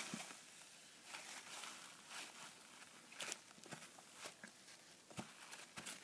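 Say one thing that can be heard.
A tissue rubs and wipes across a whiteboard.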